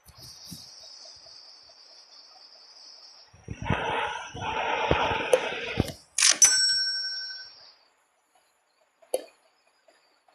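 Soft clicks sound as menu buttons are tapped.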